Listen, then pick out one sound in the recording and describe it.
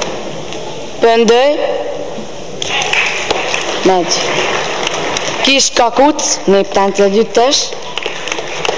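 A young woman speaks into a microphone over a loudspeaker in a large echoing hall.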